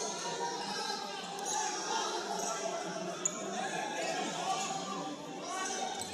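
A handball bounces on the wooden floor.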